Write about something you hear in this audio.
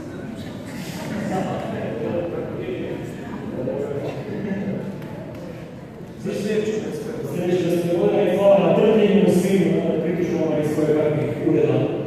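A man speaks into a microphone with animation in an echoing hall.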